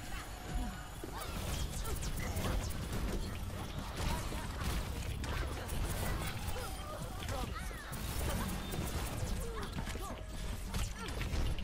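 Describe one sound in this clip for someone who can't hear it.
Explosions boom and burst.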